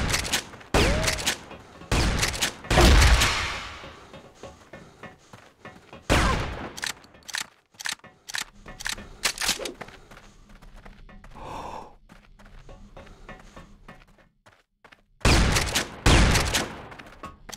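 A shotgun fires loud blasts that echo.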